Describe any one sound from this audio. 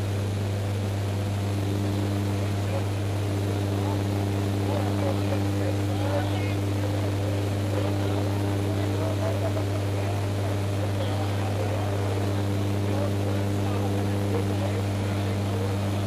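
Rushing wind roars through an open aircraft door.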